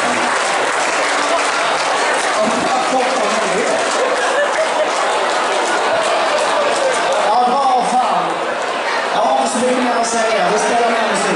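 A young man sings into a microphone through loudspeakers.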